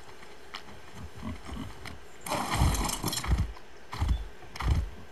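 Heavy animal footsteps thud on grass.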